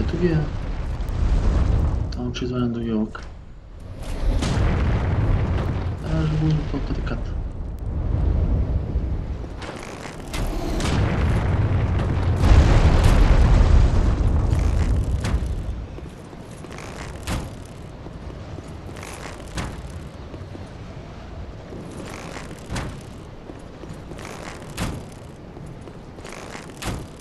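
Armored footsteps crunch quickly through snow.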